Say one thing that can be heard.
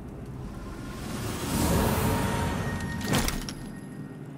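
A magical energy burst whooshes and crackles.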